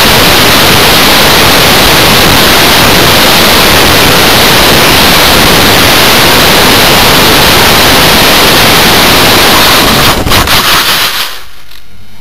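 Wind roars loudly past a small model aircraft in flight.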